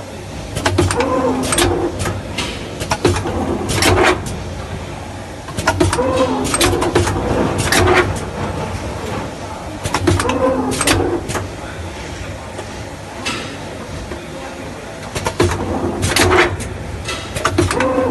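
Glass bottles clink against each other on a conveyor.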